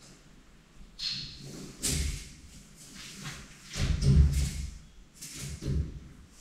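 A man talks quietly a little further off.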